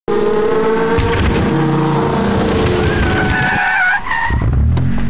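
Car engines roar as two cars race.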